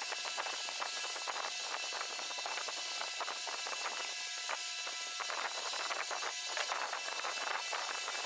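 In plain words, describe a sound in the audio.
A screwdriver clicks and scrapes as it turns small screws.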